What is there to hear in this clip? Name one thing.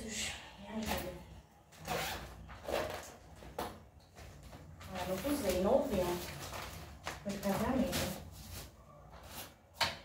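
Plastic packaging crinkles and rustles as it is handled.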